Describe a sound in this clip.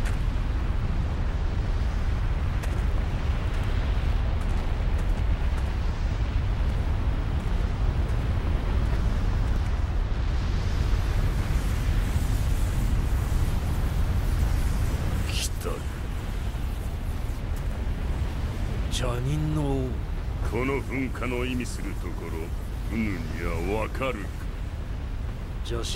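A volcano rumbles low and steadily.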